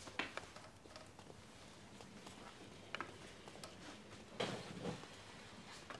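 A walking cane taps on a floor.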